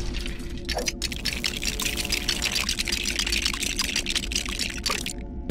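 Small plastic bricks clatter and click rapidly as something is put together.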